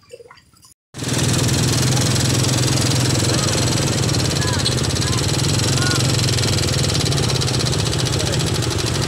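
A boat engine drones steadily and loudly.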